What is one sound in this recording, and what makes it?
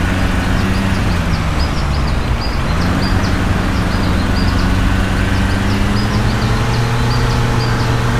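Tyres roll over a paved road.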